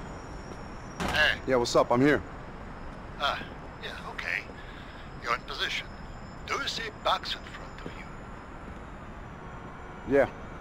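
A man talks on a phone, close by and with animation.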